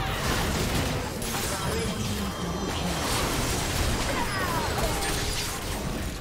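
Game spell effects whoosh and blast in quick bursts.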